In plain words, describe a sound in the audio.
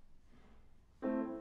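A piano begins to play.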